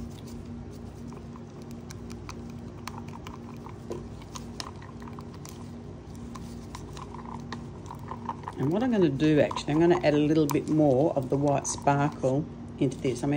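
A wooden stick stirs thick paint in a plastic cup, scraping and tapping against its sides.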